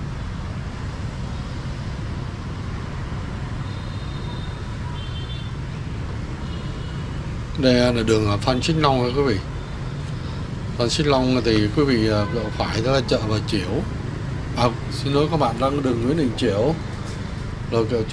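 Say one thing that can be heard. Motorbike engines hum steadily in busy street traffic.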